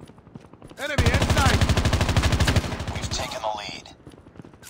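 An automatic rifle fires rapid bursts of loud shots.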